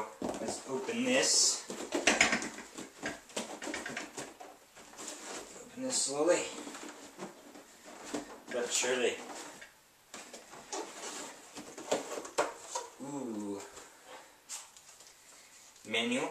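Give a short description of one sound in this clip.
A cardboard box scrapes and rustles as it is handled and opened.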